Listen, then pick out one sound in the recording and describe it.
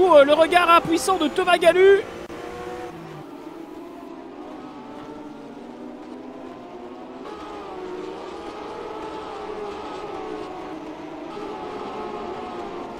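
Racing car engines drone steadily, rising and falling in pitch as cars speed past.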